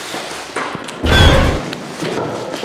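A young man shouts loudly close by.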